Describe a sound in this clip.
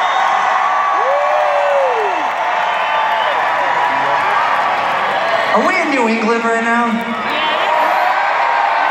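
A large crowd cheers and shouts.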